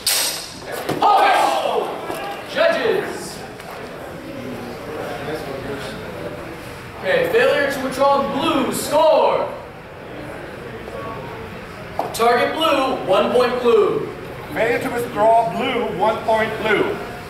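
A man speaks loudly, calling out to the fencers.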